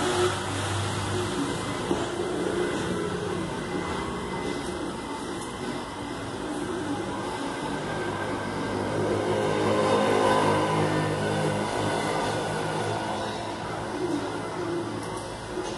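A heat gun blows with a steady, whooshing hum.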